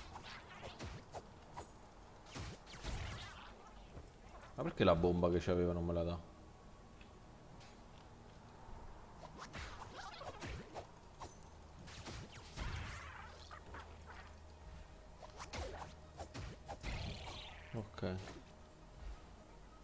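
Sharp game sound effects of blows and blasts ring out during a fight.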